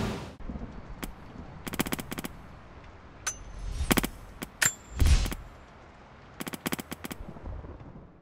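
Menu clicks tick sharply several times.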